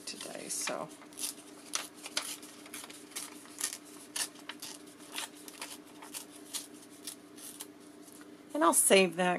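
Sticky tape crackles as it is peeled off a roll.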